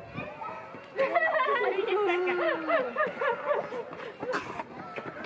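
A child speaks loudly and excitedly close by.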